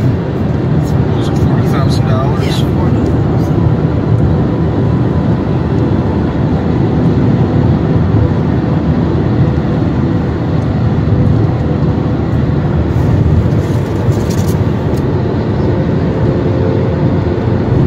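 A car engine rumbles steadily inside a moving car.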